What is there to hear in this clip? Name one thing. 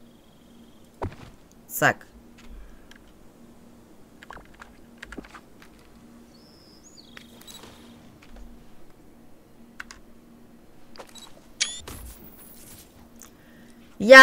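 Soft clicks and whooshes of a game menu sound.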